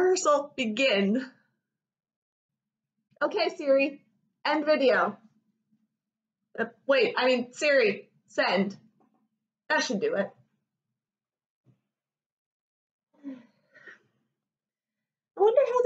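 A young woman talks with animation, close to a microphone, in short bursts with pauses.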